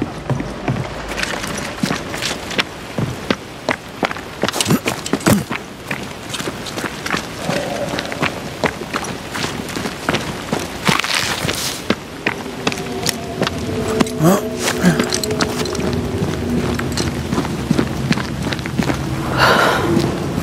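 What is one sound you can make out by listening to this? Footsteps crunch quickly over rough ground.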